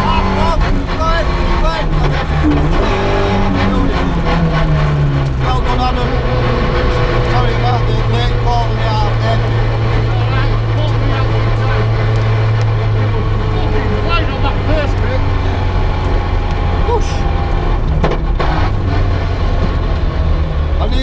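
A rally car engine roars loudly from inside the cabin, its pitch rising and falling with the gear changes.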